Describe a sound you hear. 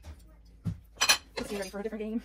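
A knife clatters onto a plate.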